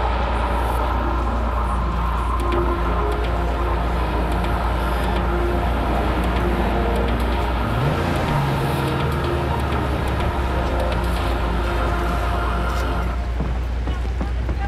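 Tyres skid and screech on wet pavement.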